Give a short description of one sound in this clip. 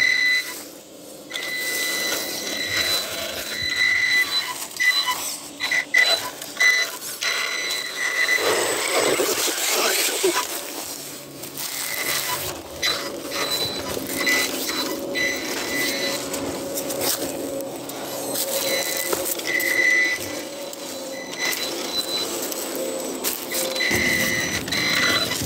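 Rubber tyres scrape and crunch over rock and dry leaves.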